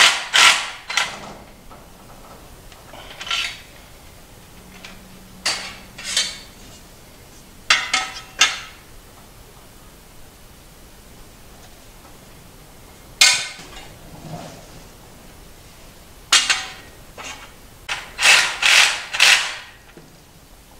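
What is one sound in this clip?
Metal frame parts clank and rattle up close.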